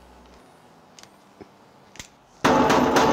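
A pistol's slide and parts click and clack as a man handles it.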